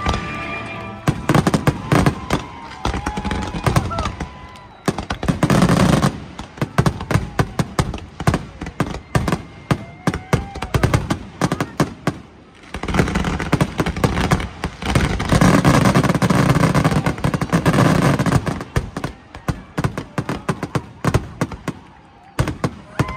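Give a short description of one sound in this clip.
Fireworks burst with loud, rapid booms and crackles nearby.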